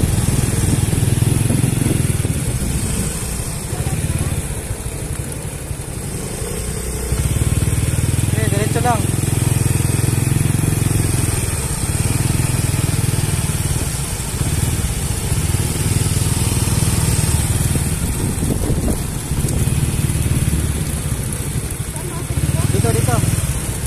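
A motor scooter engine hums steadily nearby.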